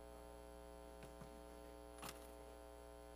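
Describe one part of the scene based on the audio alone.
A man sits down at a piano with a few soft knocks.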